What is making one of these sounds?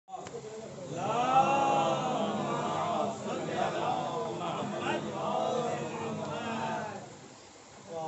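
A young man speaks loudly into a microphone, heard through a loudspeaker in a room.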